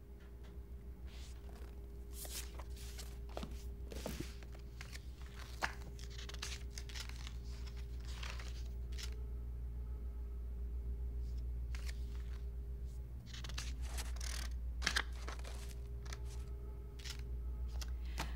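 Paper rustles as pages are leafed through and turned.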